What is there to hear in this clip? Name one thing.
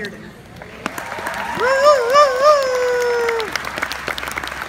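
Several young people in the crowd whoop and cheer.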